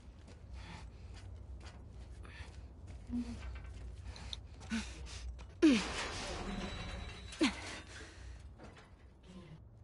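Boots clank on a metal ladder rung by rung.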